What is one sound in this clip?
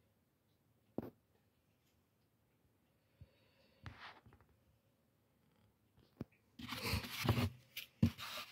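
A hard plastic case clicks and scrapes as it is handled close by.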